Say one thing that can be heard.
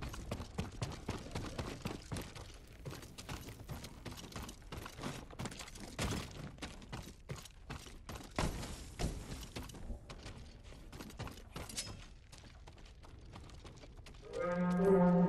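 Footsteps thud and creak on wooden floorboards.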